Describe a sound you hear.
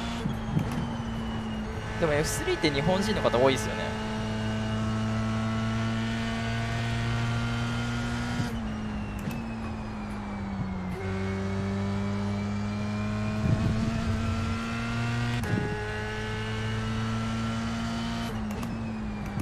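A racing car engine drones at high revs, dropping in pitch as it shifts gears.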